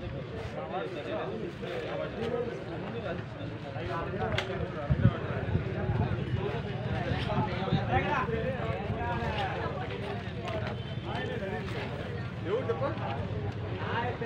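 Several men talk at a distance outdoors.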